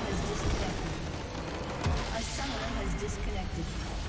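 A structure explodes in a loud booming crash.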